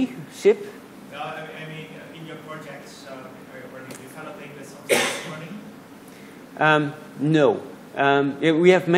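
A man talks steadily through a microphone in an echoing hall.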